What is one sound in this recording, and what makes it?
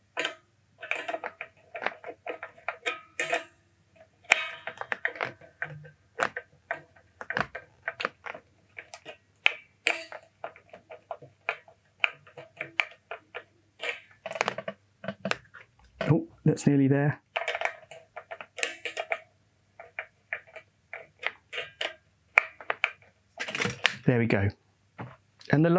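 Hands click and tap on a wooden instrument at close range.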